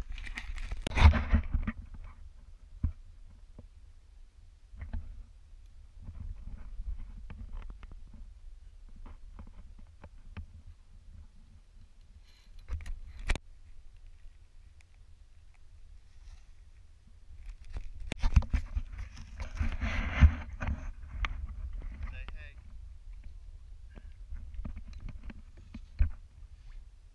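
Water laps gently against a kayak's hull.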